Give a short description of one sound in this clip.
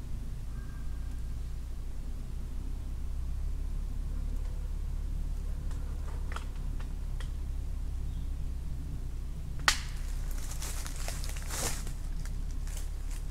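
Low wind rumbles steadily outdoors.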